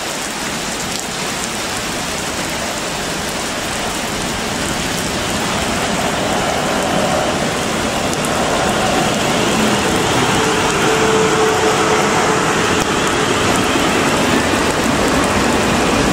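A train approaches and rumbles past close by, growing louder.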